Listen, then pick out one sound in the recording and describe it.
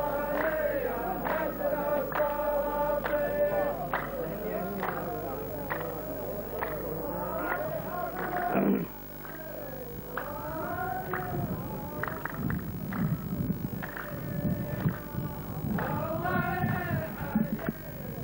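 A man sings a chant loudly through a microphone in an echoing hall.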